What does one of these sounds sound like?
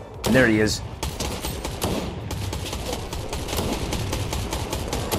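Gunfire crackles in rapid bursts in a video game.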